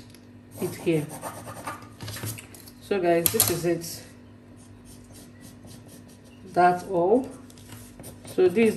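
A pencil scratches lightly across paper.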